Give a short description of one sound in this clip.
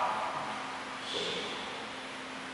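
A man speaks briefly through a microphone in an echoing hall.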